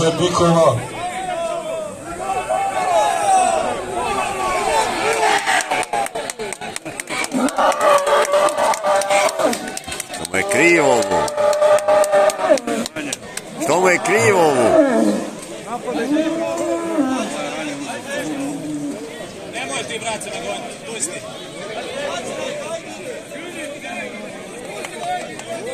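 A crowd of spectators talks and shouts outdoors.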